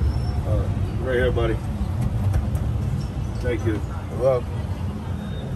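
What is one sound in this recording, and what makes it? People talk faintly nearby.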